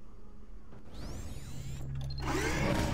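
Elevator doors slide open.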